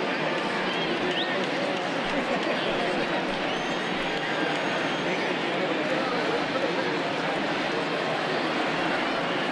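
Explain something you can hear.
A large stadium crowd murmurs and chatters steadily.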